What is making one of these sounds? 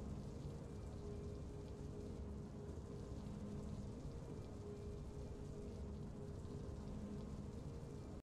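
Triumphant game music plays softly.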